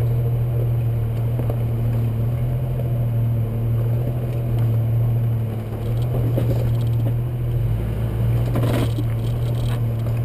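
Tyres crunch and bump over loose rocks.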